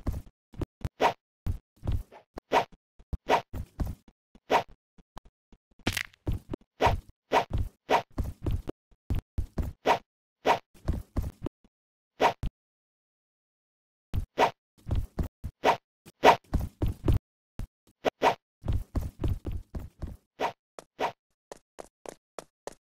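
Footsteps knock quickly on wooden planks.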